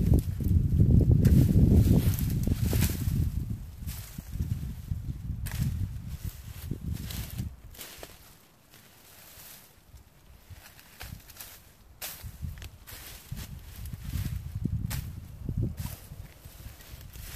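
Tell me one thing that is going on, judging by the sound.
Dry branches rustle and scrape as they are pulled.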